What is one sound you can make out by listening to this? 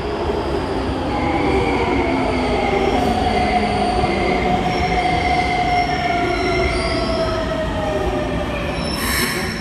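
A train's brakes squeal as it slows to a stop.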